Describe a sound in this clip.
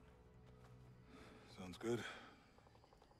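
A man answers briefly in a relaxed voice.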